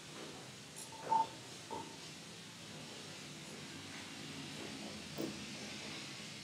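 Objects clink softly on a table.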